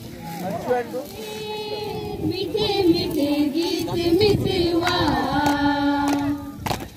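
A group of young people sings together.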